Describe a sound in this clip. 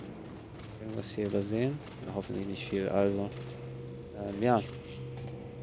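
A man talks close to a microphone in short bursts.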